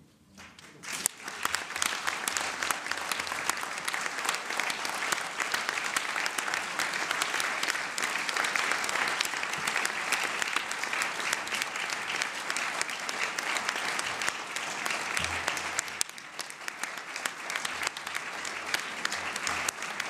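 A large audience applauds steadily in a large hall.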